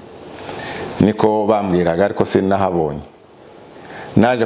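A man speaks calmly and close to a clip-on microphone.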